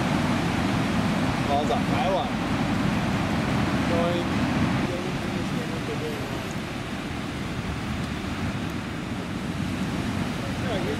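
Waves crash and break with a rushing roar.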